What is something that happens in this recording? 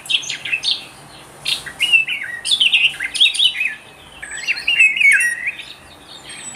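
A songbird sings in quick, chattering bursts.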